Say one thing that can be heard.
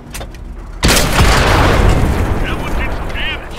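Shells explode nearby with heavy blasts.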